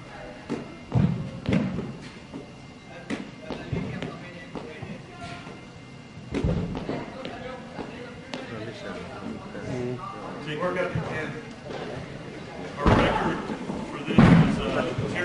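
A heavy ball thuds as it is caught.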